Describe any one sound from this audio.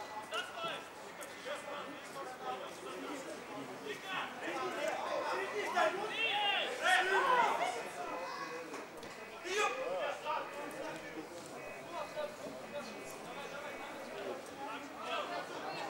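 Men in a nearby crowd talk and shout excitedly outdoors.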